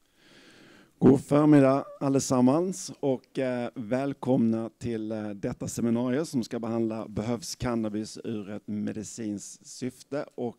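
A middle-aged man speaks calmly into a microphone, heard over loudspeakers in a room.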